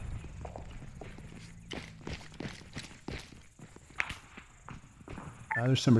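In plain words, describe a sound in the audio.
Footsteps scuff on a concrete rooftop.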